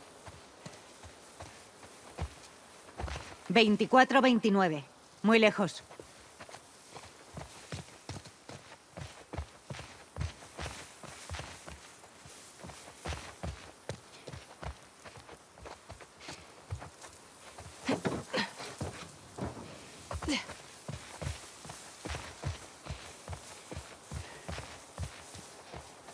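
Tall dry grass rustles as someone pushes through it.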